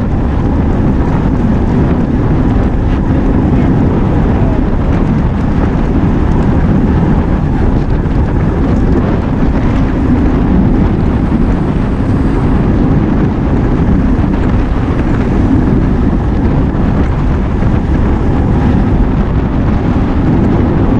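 Wind rushes loudly over a moving microphone outdoors.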